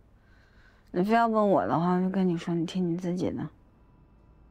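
A woman speaks quietly, close by.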